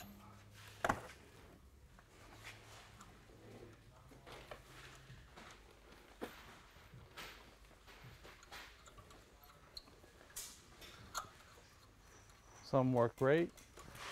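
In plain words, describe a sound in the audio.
A metal nut clicks and scrapes as it is turned onto a threaded rod.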